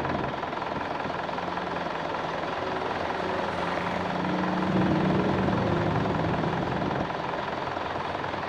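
Water gushes from a hose.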